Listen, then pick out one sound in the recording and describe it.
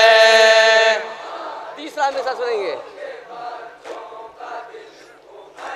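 A crowd of men chant and call out in the background.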